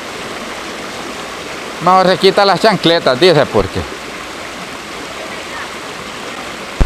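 A shallow stream flows and burbles steadily over rocks outdoors.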